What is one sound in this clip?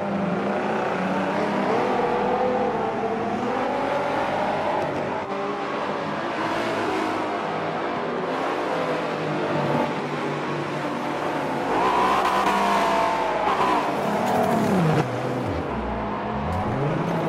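Racing car engines roar and rev as cars speed past.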